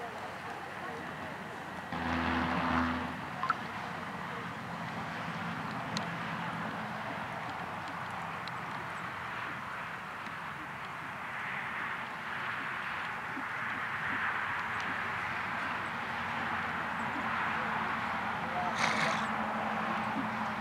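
A horse's hooves thud softly on sand as it trots.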